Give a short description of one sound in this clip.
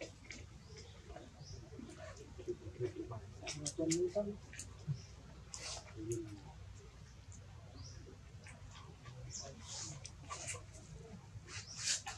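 A young monkey licks and sucks on a lollipop with wet smacking sounds.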